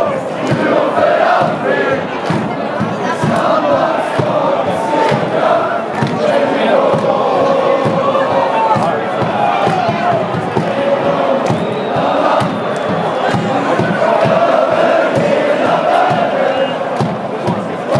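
A large stadium crowd sings and chants loudly all around.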